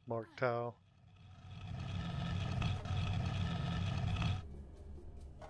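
A heavy stone urn scrapes and grinds along a stone floor.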